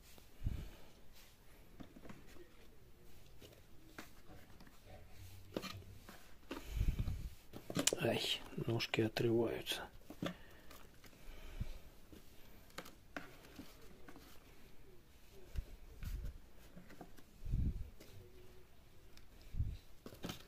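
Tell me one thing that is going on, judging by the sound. Mushrooms rustle and thud softly as a hand sorts them in a plastic bucket.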